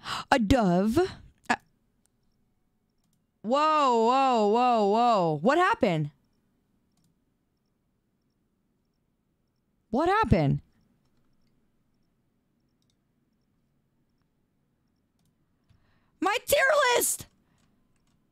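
A young woman speaks with animation in short, high-pitched bursts close to a microphone.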